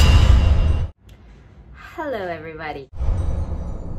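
A young woman exclaims with excitement close by.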